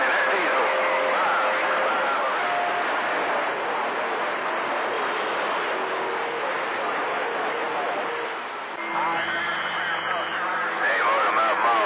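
Distorted voices come and go through a radio speaker.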